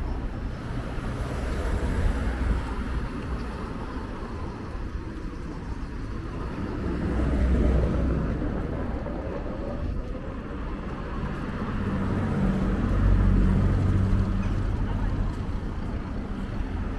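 Pushchair wheels rattle over paving stones.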